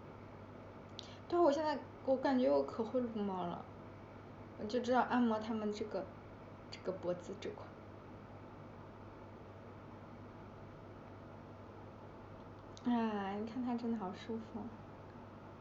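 A young woman speaks calmly and close by, in short bursts with pauses.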